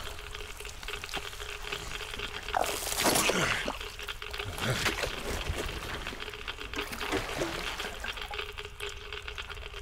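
Gloved hands scrape and shuffle over loose rubble while crawling.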